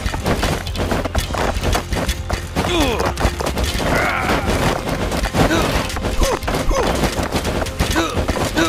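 Swords clash and thud rapidly in a busy battle.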